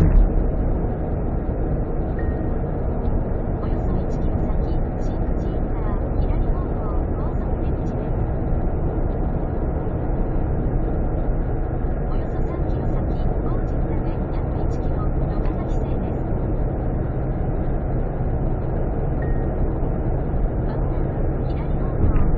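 Tyres roar steadily on a smooth highway from inside a car.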